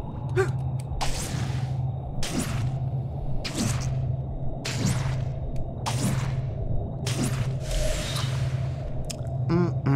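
A web line shoots out with a sharp whoosh, again and again.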